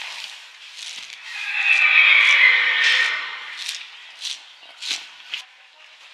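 Horse hooves shuffle and thud on straw.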